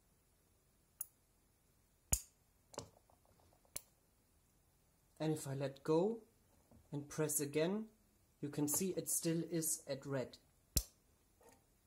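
A push button clicks sharply a few times.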